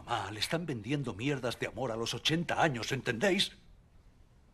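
A middle-aged man speaks calmly and closely.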